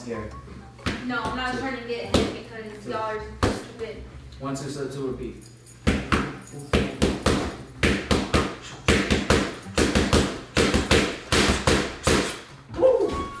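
Boxing gloves smack rapidly against punch mitts.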